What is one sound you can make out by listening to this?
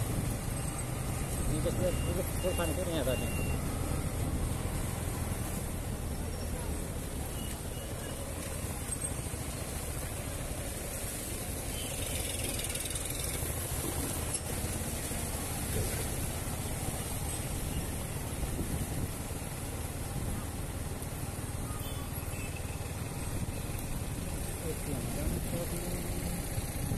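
A motorcycle engine runs as the bike rides slowly through traffic.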